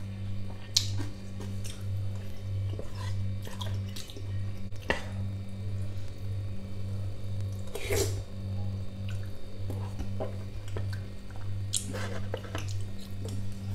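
A man chews food close to a microphone.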